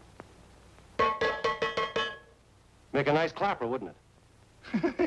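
A middle-aged man speaks firmly and loudly.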